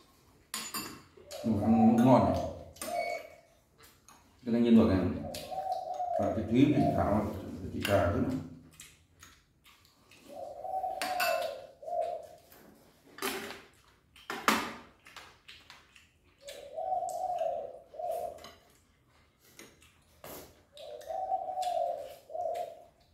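Chopsticks clink against bowls.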